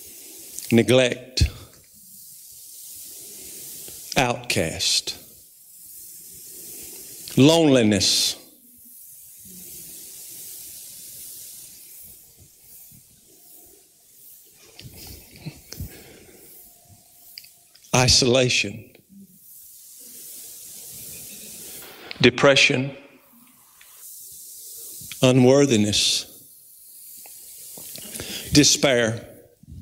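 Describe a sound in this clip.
A middle-aged man speaks calmly into a microphone in short phrases with long pauses, in a reverberant hall.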